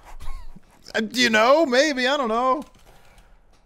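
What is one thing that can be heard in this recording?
A man speaks up in a playful, sing-song voice.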